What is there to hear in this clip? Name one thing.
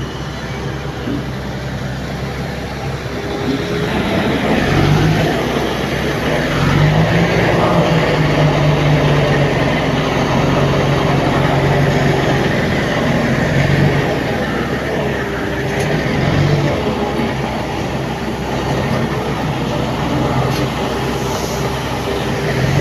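A heavy truck engine rumbles and revs as it drives over rough ground.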